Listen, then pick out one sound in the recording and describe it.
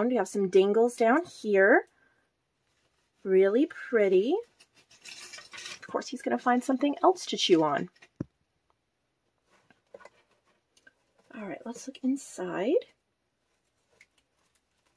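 Stiff paper pages rustle and rub as a handmade book is turned and handled.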